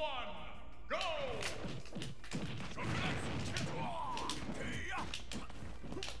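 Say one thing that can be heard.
Punches and fiery blasts crash in a video game.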